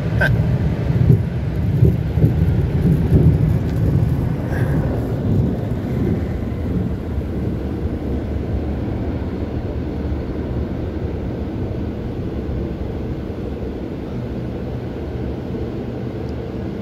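Car wash machinery rumbles steadily, heard from inside a car.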